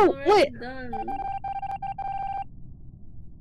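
A short electronic tone rings steadily.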